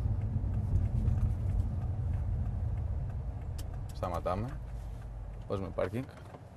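An engine hums low and steady inside a car.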